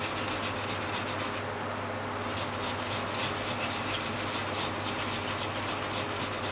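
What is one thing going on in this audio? Food rasps rhythmically back and forth across a grater blade.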